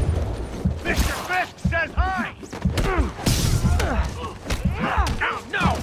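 Punches and kicks thud heavily in a fight.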